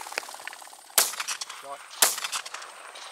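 A shotgun fires two loud shots close by, in the open air.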